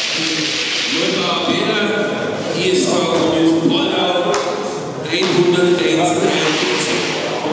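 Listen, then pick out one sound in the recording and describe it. A man talks in a large echoing hall.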